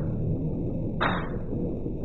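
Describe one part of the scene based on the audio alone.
A whooshing chime sounds for a reward.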